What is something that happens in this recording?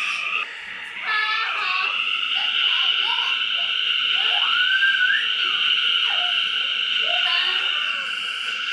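A subway train's motor whines steadily as it speeds through a tunnel.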